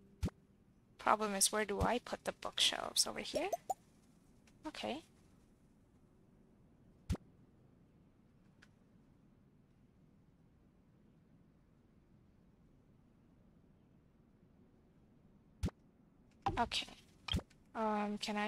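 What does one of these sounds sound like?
Short game interface clicks sound.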